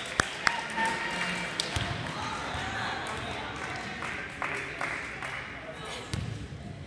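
A volleyball thumps off players' hands and the floor.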